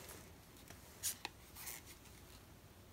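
A plastic card taps and clicks against a board.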